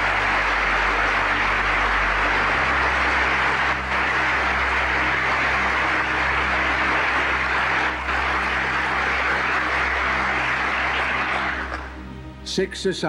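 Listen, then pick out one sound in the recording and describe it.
A large crowd applauds loudly in a big hall.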